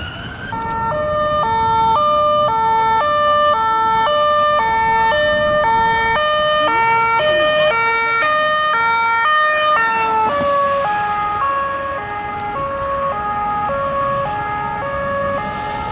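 A police siren blares a fast two-tone wail close by, then drops in pitch and moves away.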